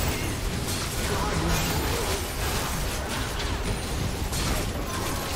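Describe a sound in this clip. Game spells blast, crackle and clash in a fast, busy fight.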